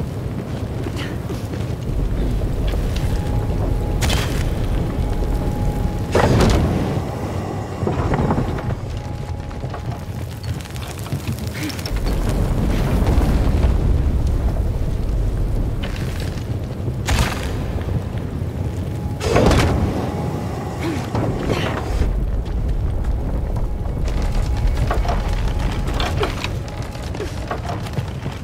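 Flames roar loudly.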